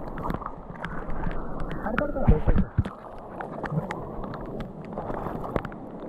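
Flip-flops squelch and splash through wet, muddy grass.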